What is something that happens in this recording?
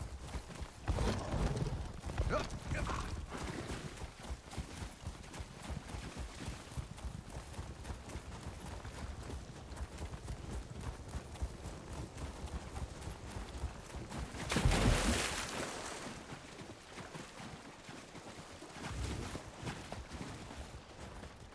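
A mount's hooves pound steadily on soft ground.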